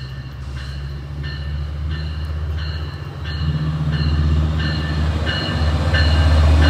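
A train's bell rings in a steady, repeating pattern.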